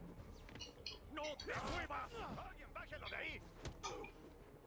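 Game characters shout and grunt during a fight.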